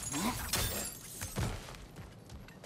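A heavy body lands with a thud after a jump.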